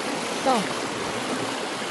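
Water gushes and splashes out of a hose pipe.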